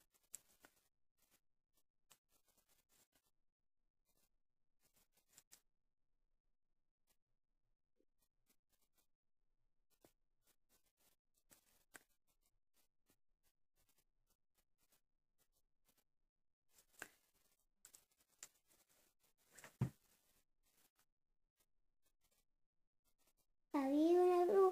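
Fabric rustles softly as hands handle it.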